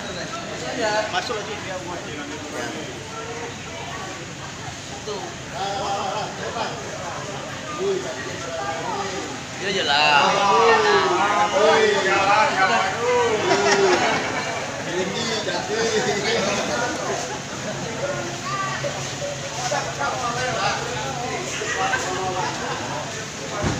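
Several people talk and chatter close by in a crowd.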